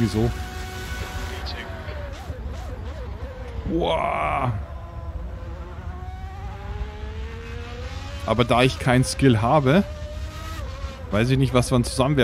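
A racing car engine drones and revs up and down.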